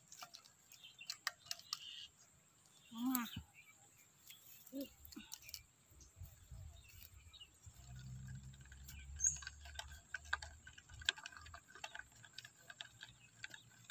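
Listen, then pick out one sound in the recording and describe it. Hands scrape and pat loose dry soil close by.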